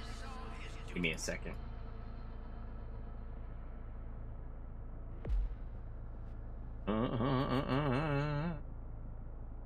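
An older man talks casually into a close microphone.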